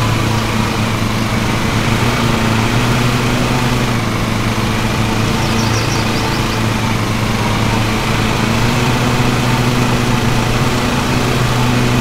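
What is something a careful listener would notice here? A riding mower engine hums steadily.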